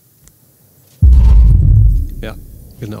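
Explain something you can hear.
A heavy blast booms and rumbles briefly.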